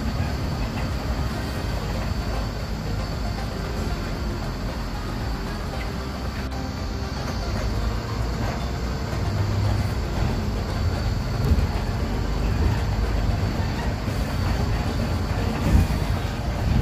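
A bus rattles and rumbles over the road.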